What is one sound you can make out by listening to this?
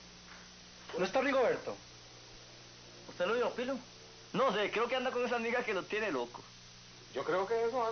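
A man talks with animation.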